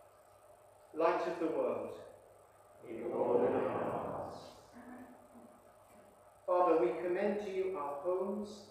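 An elderly man speaks calmly through a microphone in a reverberant room.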